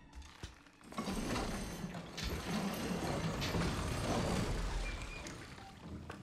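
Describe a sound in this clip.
A heavy metal wheel creaks and grinds as it is turned.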